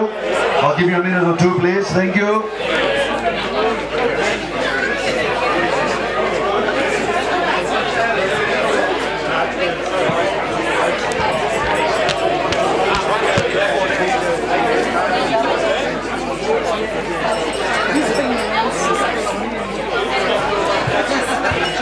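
A large crowd of men and women chatter and laugh all around.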